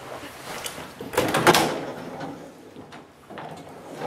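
A closet door slides open.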